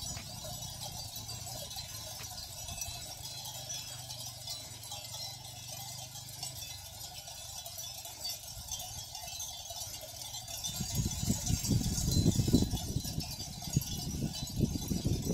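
A flock of sheep shuffles softly across grass.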